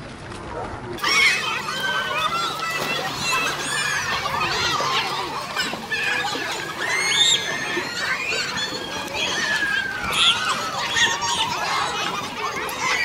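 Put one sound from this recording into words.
Children shout and squeal excitedly outdoors.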